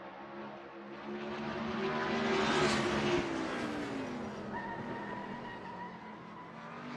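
A racing car roars close by and fades away.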